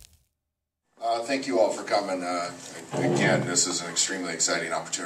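A man speaks loudly and steadily into a microphone.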